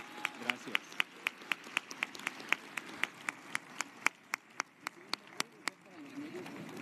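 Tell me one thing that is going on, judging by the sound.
A crowd claps in a steady rhythm in a large hall.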